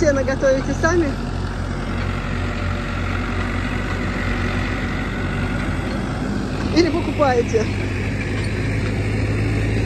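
A tractor engine rumbles steadily as it drives across a field.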